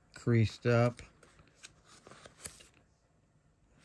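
A card slides out of a plastic sleeve with a soft rustle.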